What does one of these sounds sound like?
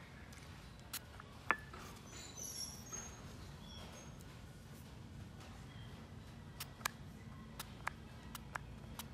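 A spray bottle hisses in short, sharp squirts.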